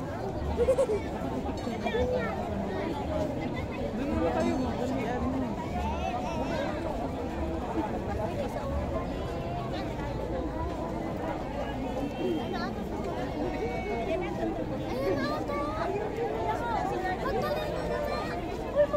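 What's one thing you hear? A large outdoor crowd of men and women chatters nearby.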